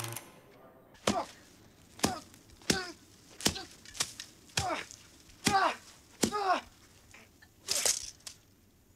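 A man tosses straw, which rustles and thumps in rhythmic bursts.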